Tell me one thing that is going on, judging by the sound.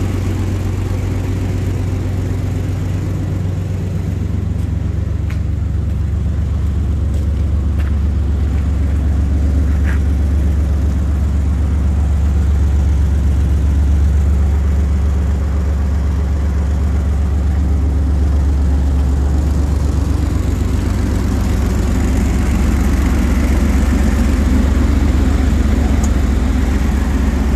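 A truck engine idles nearby with a low, steady rumble.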